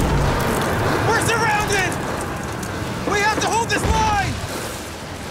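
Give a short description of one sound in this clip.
A man shouts urgently nearby.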